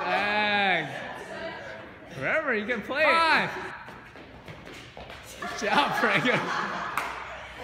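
A group of women and men cheer and shout loudly in an echoing hall.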